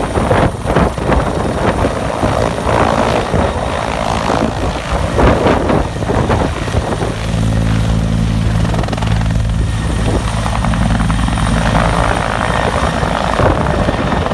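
A helicopter's engine whines as it lifts off and flies past.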